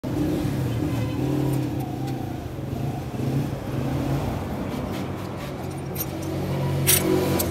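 A screwdriver clicks and scrapes against metal engine parts.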